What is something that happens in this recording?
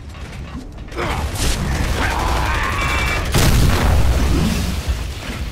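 Gunfire booms loudly and rumbles.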